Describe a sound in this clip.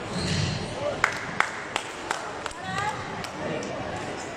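A squash ball smacks sharply against the walls, echoing in a large hall.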